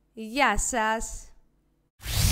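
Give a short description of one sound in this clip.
A young woman speaks brightly into a nearby microphone.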